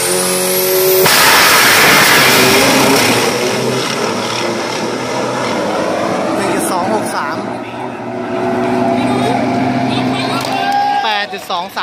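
A race truck roars off at full throttle and fades into the distance.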